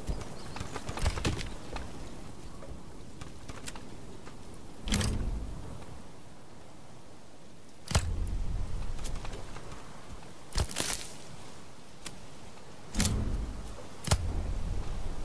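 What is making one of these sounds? Soft game interface clicks and thuds sound now and then.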